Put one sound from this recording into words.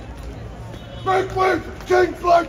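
A man shouts loudly and sharply.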